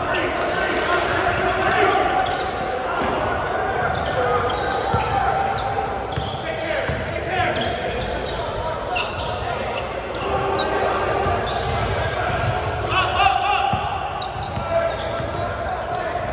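Men shout and call out during play in an echoing gym.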